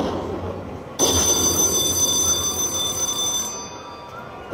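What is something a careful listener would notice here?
A slot machine rings out a long, bright chime that fades.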